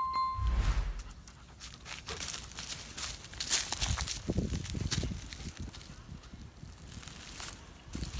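A dog rustles through dry leaves and undergrowth.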